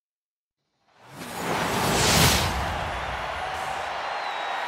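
Sparkler fountains burst and hiss with a loud whoosh.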